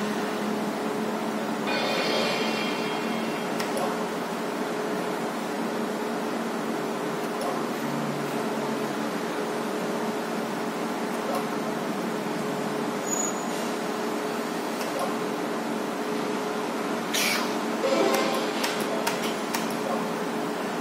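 A slot machine plays a looping electronic tune.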